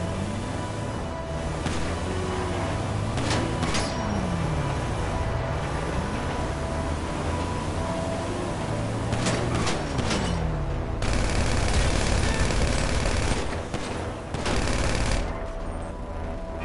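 A van's engine hums steadily while driving.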